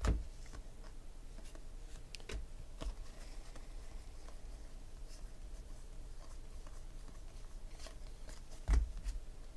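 Trading cards rustle and slide against each other as they are shuffled by hand.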